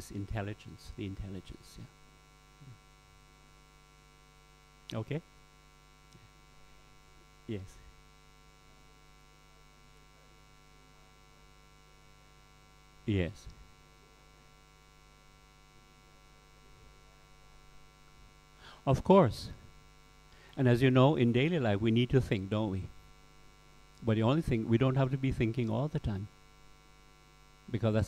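A middle-aged man speaks with animation, close to a microphone, in short bursts with pauses.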